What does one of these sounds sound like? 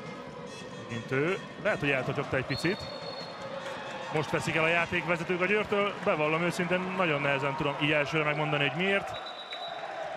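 A crowd chants loudly in unison.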